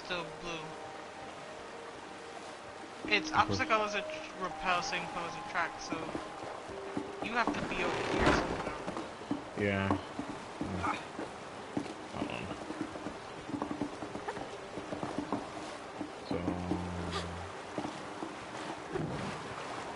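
Footsteps patter on snowy wooden planks.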